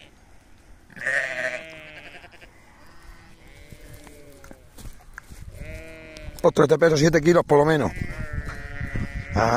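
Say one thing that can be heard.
A lamb bleats repeatedly, close by.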